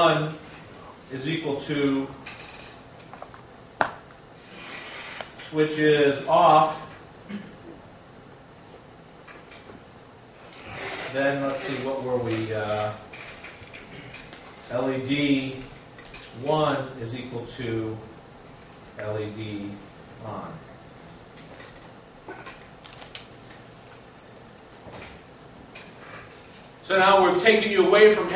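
A middle-aged man speaks calmly, explaining at length.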